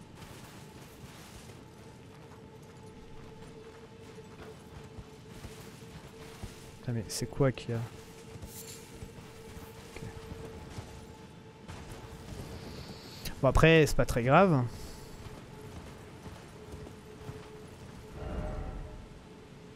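A horse's hooves clop on stone and earth.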